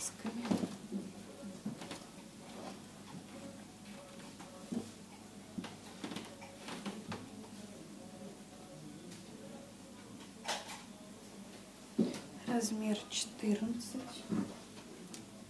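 Fabric rustles as hands move and lay out clothes.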